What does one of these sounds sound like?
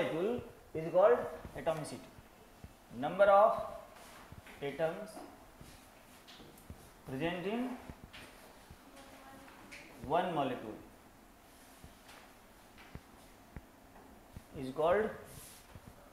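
A man speaks calmly in short phrases, as if teaching, close by.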